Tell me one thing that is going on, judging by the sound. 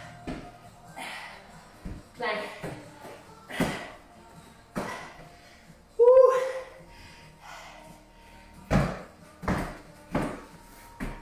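Dumbbells thud and clank on a rubber floor.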